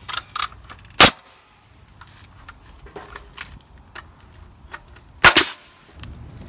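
A nail gun fires with a sharp bang.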